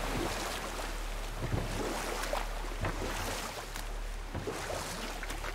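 Water laps gently against a boat.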